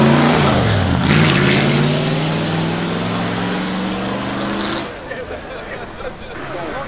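A race car engine roars as it accelerates away and fades into the distance.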